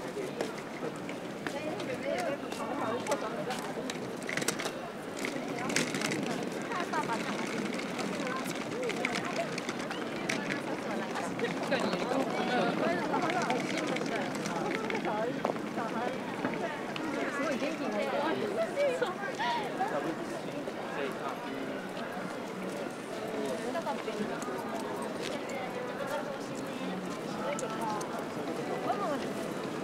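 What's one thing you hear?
Many people chatter and murmur all around on a busy street outdoors.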